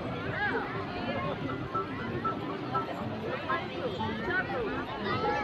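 Many children and adults chatter and call out at once outdoors.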